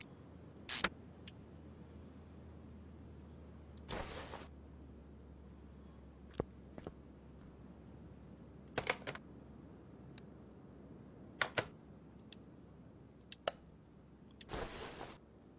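Short interface clicks and whooshes sound now and then.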